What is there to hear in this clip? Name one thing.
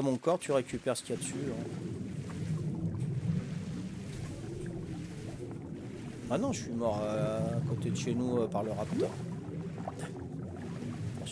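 Water rumbles and gurgles, muffled as if heard underwater.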